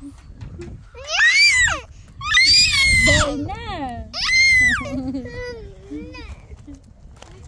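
A toddler babbles and squeals excitedly close by.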